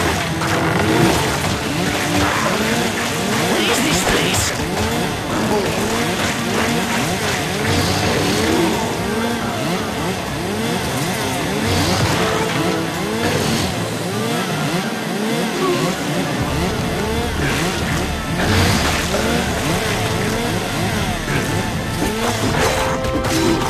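A chainsaw buzzes and whirs.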